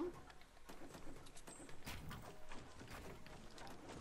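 Wooden planks clatter as a wall is built.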